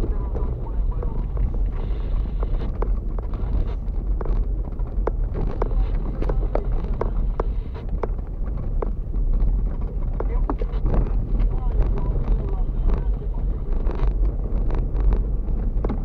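A car engine rumbles low and steady from inside the cabin.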